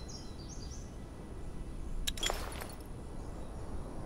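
A game menu clicks open.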